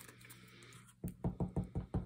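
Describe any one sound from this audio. A glue roller clicks as it is pressed along paper.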